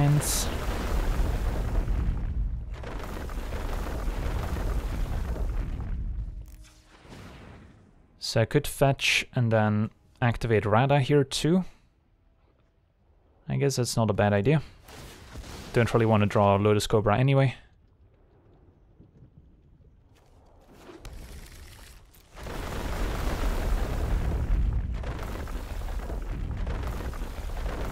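Digital card-game effects whoosh and rumble as cards are played.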